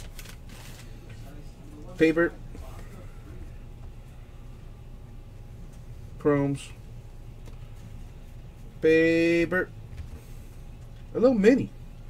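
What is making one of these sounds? Trading cards rustle and flick as hands sort through them.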